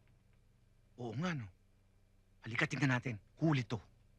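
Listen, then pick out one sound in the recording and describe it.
A man speaks close by in surprise.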